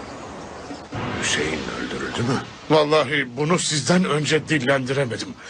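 A man speaks forcefully and with emotion, close by.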